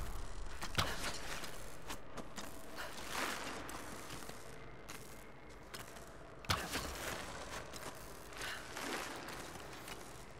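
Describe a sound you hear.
Electric sparks crackle and buzz.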